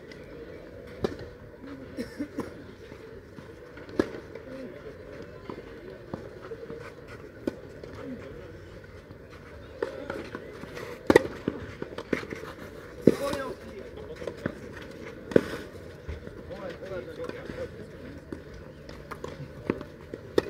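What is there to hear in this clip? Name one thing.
Tennis balls are struck with rackets in sharp pops.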